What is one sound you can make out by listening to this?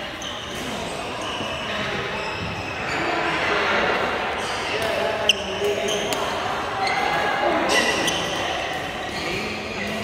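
Badminton rackets strike shuttlecocks with sharp pops in an echoing hall.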